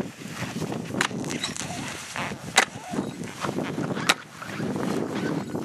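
A metal ice chisel strikes and scrapes ice.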